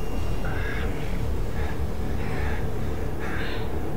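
A man pants heavily up close.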